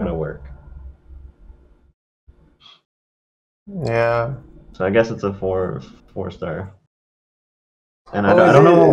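A young man speaks casually into a close microphone, in short bursts with pauses.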